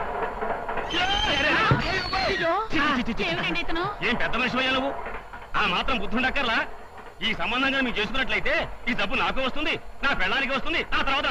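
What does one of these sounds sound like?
A woman cries out in alarm and wails.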